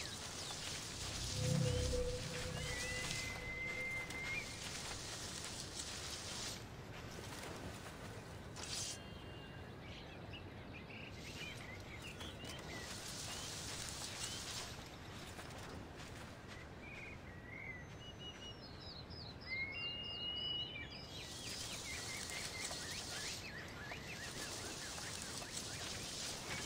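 A figure rustles through dense flowers and plants, brushing the stems.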